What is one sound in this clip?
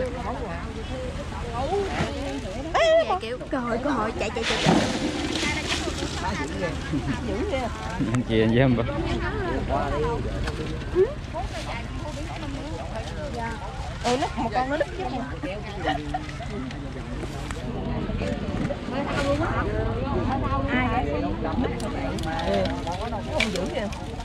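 Several men and women talk with animation close by, outdoors.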